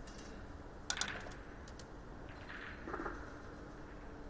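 Billiard balls knock together with a hard clack.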